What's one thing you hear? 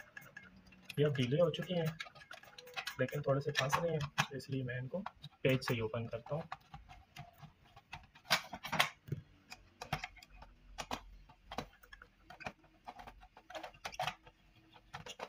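A screwdriver clicks and taps against a plastic casing.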